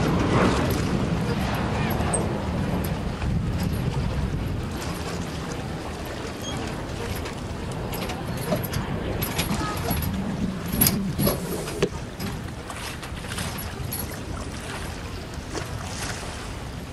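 Wind blows across the water outdoors.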